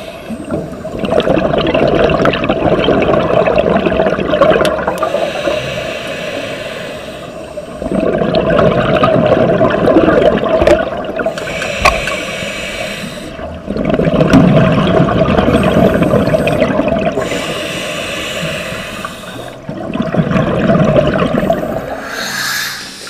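Air bubbles from a diver's breathing rush and gurgle in regular bursts underwater.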